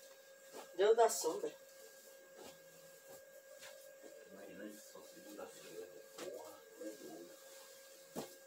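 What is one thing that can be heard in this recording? Fabric rustles as bedding is smoothed and straightened.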